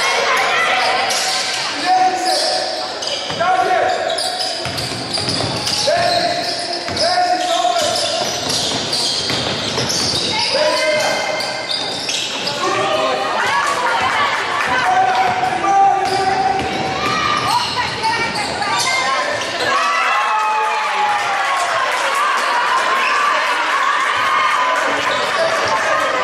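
Players call out and shout in a large echoing hall.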